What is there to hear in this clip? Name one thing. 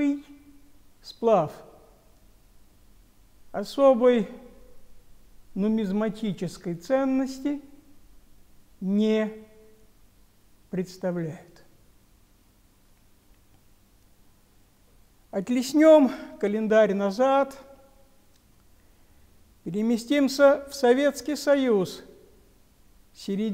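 An elderly man speaks calmly and close by, with pauses between phrases.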